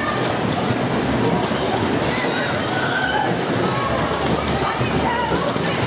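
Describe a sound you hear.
Bumper cars hum and roll across a hard floor.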